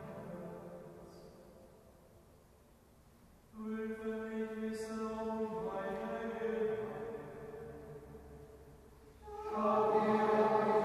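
A choir sings slowly in a large echoing hall.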